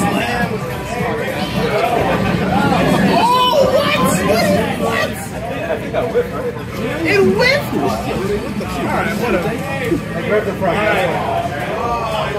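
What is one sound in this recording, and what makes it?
Fighting game sounds play from desktop loudspeakers.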